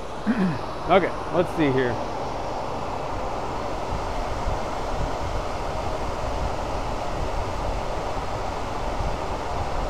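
A lathe spins steadily with a low whirring hum.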